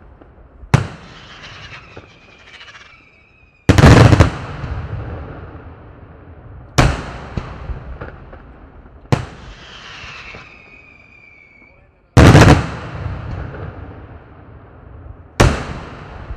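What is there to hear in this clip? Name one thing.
Firework shells burst with loud booming bangs that echo away.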